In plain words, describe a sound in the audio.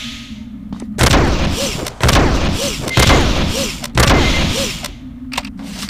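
A gun fires several loud blasts.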